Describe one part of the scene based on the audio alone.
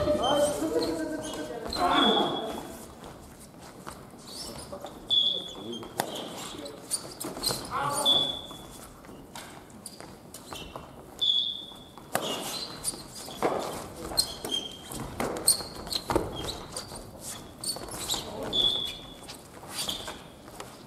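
Shuttlecocks are hit with badminton rackets, with sharp pops, in a large echoing hall.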